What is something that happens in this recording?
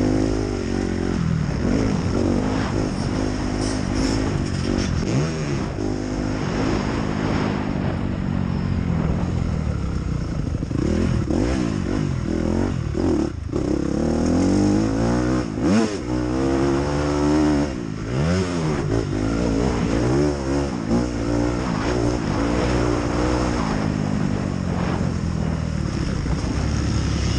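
A motorcycle engine roars close by, revving up and down as gears change.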